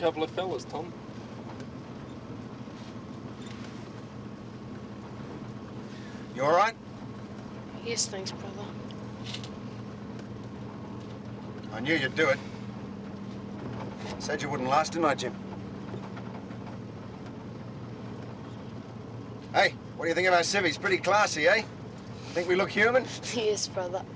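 Men talk in short bursts inside a car, close by.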